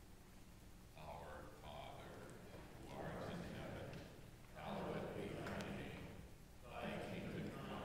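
A congregation recites a prayer together in a large echoing hall.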